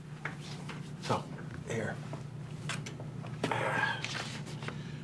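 A middle-aged man talks nearby.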